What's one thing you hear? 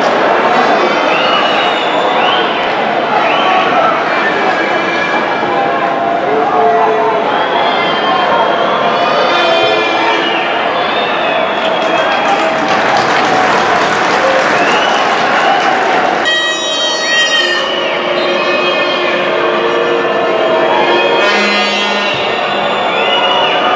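A crowd chants and cheers throughout a large open stadium.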